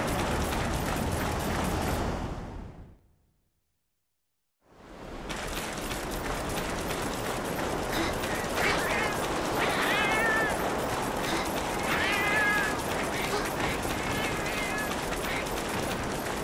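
Water rushes and roars steadily.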